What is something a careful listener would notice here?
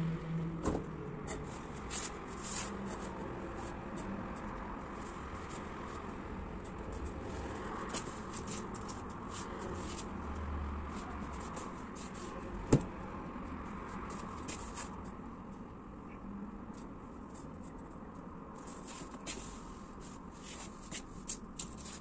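Plastic clothes pegs click and snap now and then.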